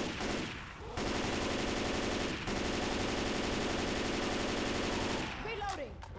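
A rifle fires rapid bursts.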